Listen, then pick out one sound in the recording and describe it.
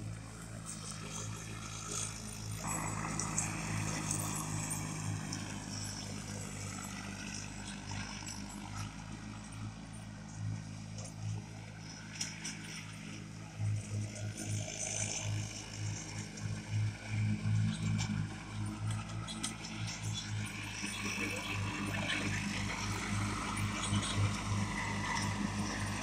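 A riding lawn mower's engine hums steadily as it cuts grass.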